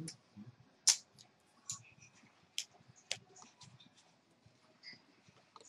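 Playing cards riffle and slap on the table.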